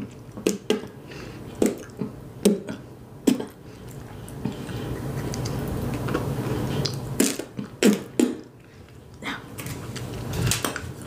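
Fingers crinkle and crackle a wrapper close to a microphone.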